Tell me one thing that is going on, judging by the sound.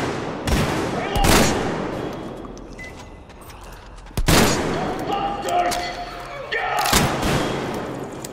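A rifle fires single loud shots that echo and fade.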